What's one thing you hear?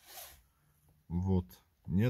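A steering wheel button clicks under a finger.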